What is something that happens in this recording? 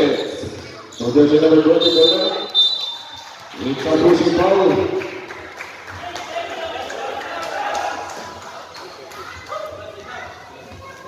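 A crowd of spectators shouts and cheers nearby.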